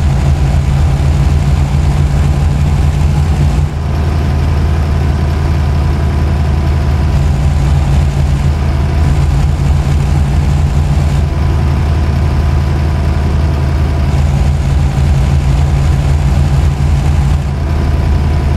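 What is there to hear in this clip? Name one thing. Tyres roll on a road with a constant rumble.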